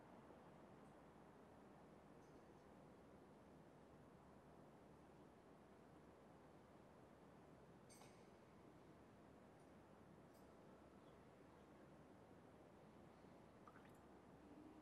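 A man speaks quietly into a microphone in a large echoing hall.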